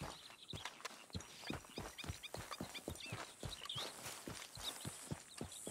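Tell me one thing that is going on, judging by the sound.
Footsteps crunch quickly on a dirt path.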